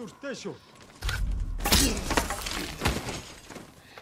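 A sword slashes and strikes with sharp metallic hits.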